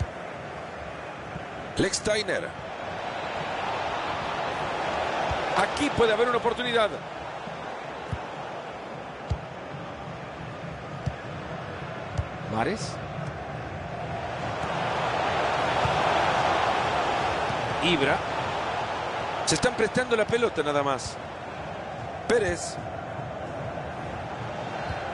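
A stadium crowd roars steadily, swelling louder and then fading.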